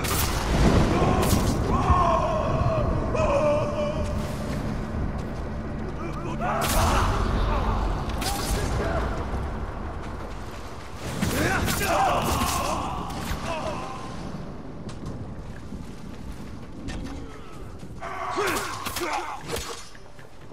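Swords clash and ring in a fight.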